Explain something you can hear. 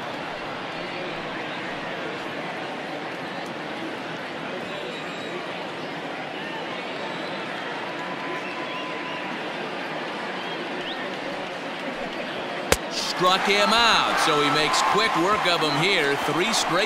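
A large crowd murmurs steadily.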